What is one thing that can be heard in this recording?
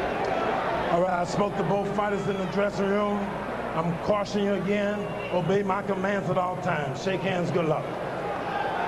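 A man announces loudly through a microphone over loudspeakers.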